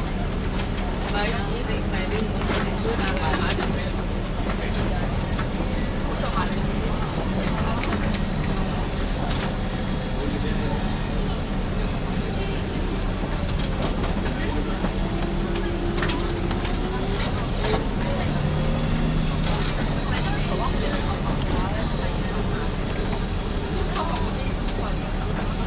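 Loose fittings rattle and click as the bus rolls over the road.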